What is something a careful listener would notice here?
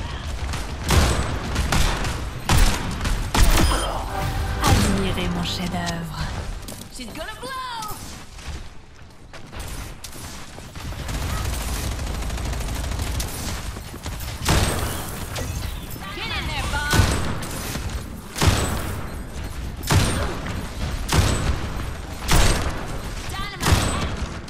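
Sharp rifle shots crack out one at a time.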